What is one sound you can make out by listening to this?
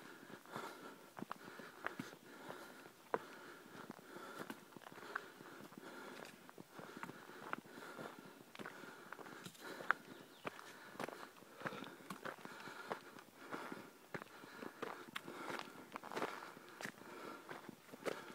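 Footsteps crunch along a dirt trail at a quick pace.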